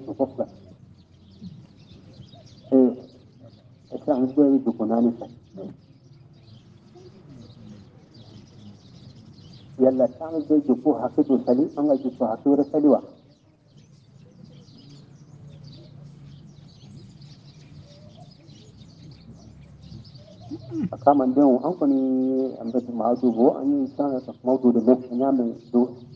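An elderly man chants in a melodic voice, in bursts with pauses.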